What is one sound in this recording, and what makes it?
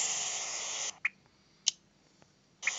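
Short electronic clicks sound from a game menu.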